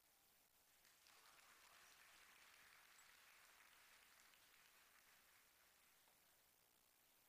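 A crowd applauds and cheers in a large echoing hall.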